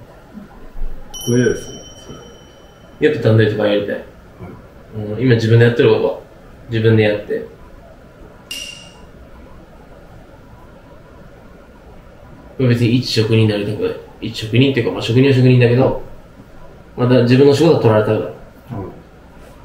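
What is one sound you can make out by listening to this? A young man speaks calmly close by, in short phrases.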